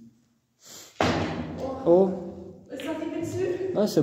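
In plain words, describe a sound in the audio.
A cue strikes a ball on a pool table.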